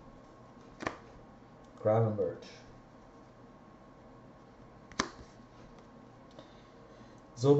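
Trading cards flick and rustle in hands.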